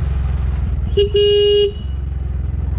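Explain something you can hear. A scooter horn honks briefly.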